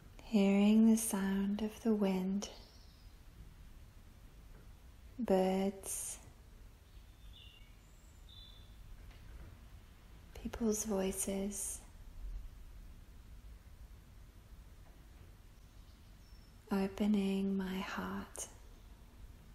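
A woman speaks calmly and softly, in short phrases with long pauses.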